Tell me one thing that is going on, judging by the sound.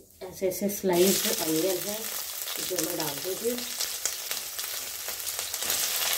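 Onions hiss and sizzle loudly in hot oil.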